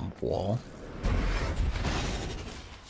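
A deep magical burst roars.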